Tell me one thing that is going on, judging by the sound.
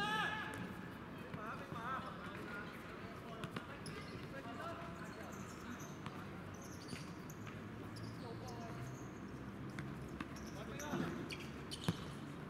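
Young players shout and call out to one another across an open outdoor court.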